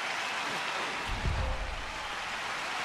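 A whooshing swoosh sweeps past with a low boom.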